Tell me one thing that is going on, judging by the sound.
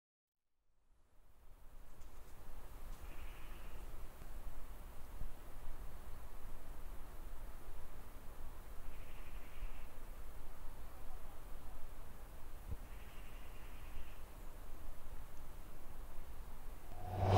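Wind blows steadily and rumbles outdoors.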